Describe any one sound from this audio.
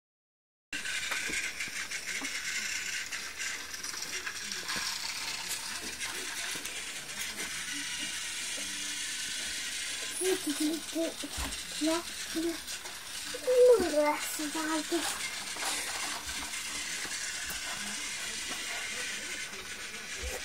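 A toy train whirs along its track.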